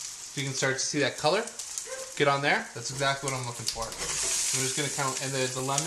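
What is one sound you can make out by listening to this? Potatoes are turned over in a sizzling pan.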